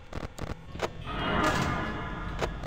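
A light buzzes briefly.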